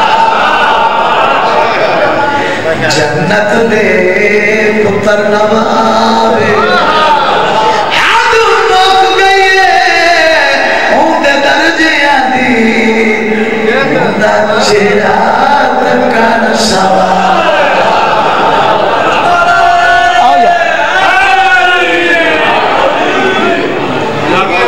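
A man speaks passionately into a microphone, his voice loud and echoing through a loudspeaker.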